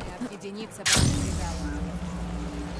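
A burst of crackling energy flares up.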